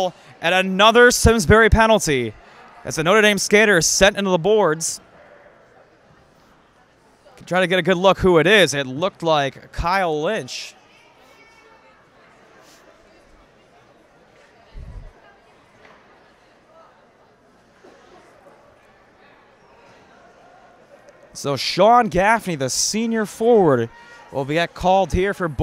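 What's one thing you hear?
Ice skates scrape and glide on an ice rink.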